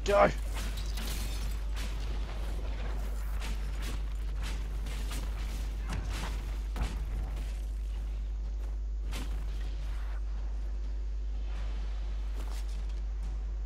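Magic spells crackle and whoosh in short bursts.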